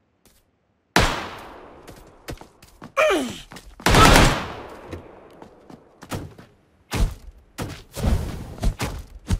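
Gunshots ring out loudly, close by, with echoing bursts.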